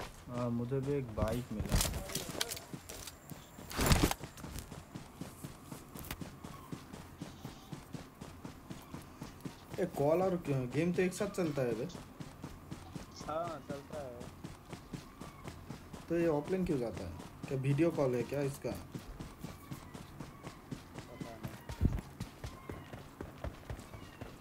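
Quick footsteps run steadily through grass.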